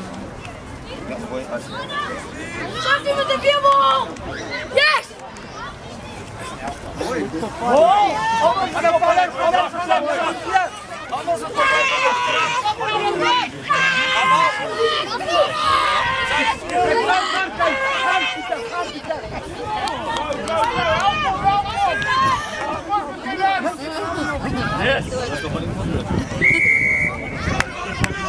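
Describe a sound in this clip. Children shout and cheer excitedly outdoors.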